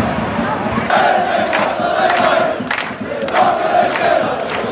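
Fans clap their hands in a rhythm.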